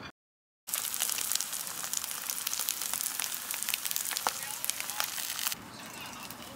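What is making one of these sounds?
Food sizzles and crackles in a hot frying pan.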